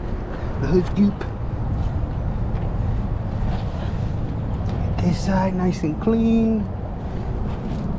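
A microfiber wash mitt scrubs across a soapy truck body.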